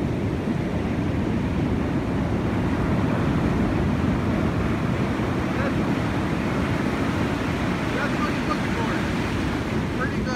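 A man splashes as he wades through shallow water.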